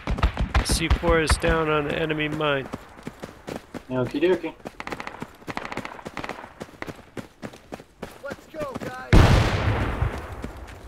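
Footsteps crunch over dry, stony ground.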